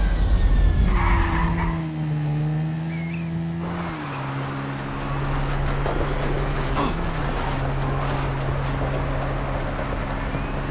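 A motorbike engine hums steadily and revs.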